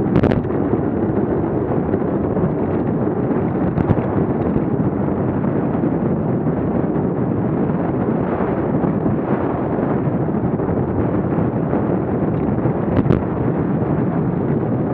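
Wind rushes loudly and steadily past a cyclist's microphone.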